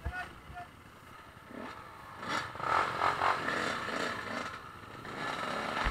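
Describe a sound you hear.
A dirt bike rides along a dirt trail.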